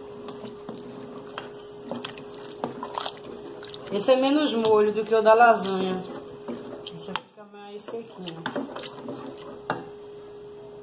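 A wooden spoon stirs and scrapes thick food in a metal pot.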